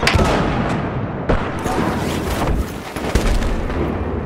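Rifle shots bang and echo.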